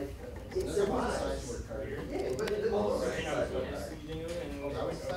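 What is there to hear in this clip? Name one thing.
Playing cards are handled and slid against each other.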